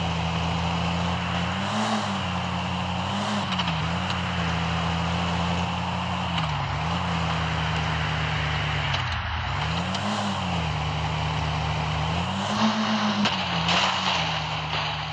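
A car engine hums steadily, its pitch rising and dipping as it speeds up and slows.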